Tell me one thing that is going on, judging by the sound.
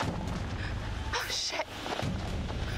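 A young woman gasps in fright, close by.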